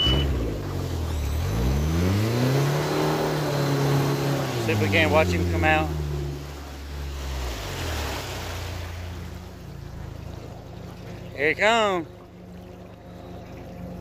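An outboard jet motor drives a small aluminium boat, speeding up and then easing back.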